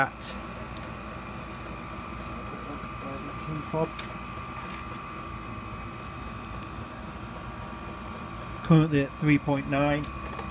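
A machine hums steadily with a high whine.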